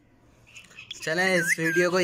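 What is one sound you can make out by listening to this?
A parrot squawks and chatters loudly.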